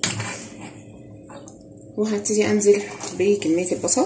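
Butter and onions sizzle in a hot pan.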